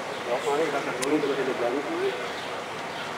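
Adult passers-by talk close by, outdoors in a narrow street.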